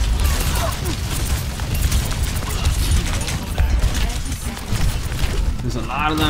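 Explosions boom in a video game.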